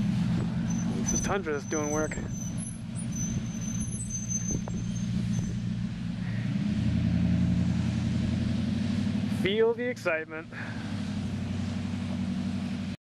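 A pickup truck's engine drones steadily nearby.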